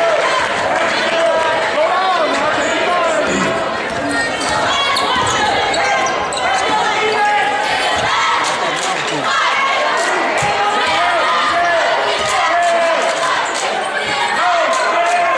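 A crowd cheers and chatters loudly in a large echoing gym.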